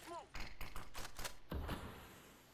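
Rapid rifle gunshots ring out in quick bursts.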